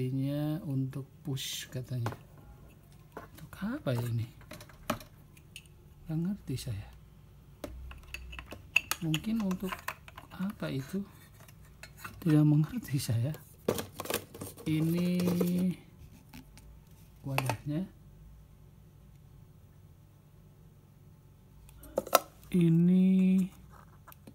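Plastic parts click and clatter as they are handled.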